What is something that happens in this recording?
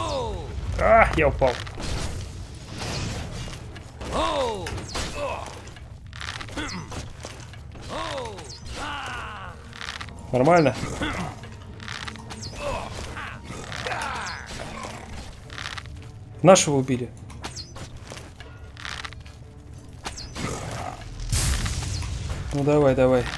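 A bow twangs as arrows are loosed.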